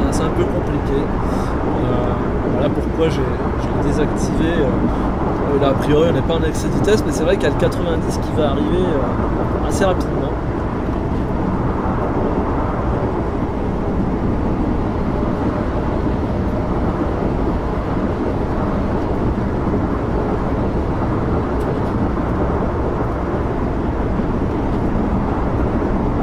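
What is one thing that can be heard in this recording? A train rumbles steadily along the rails at speed.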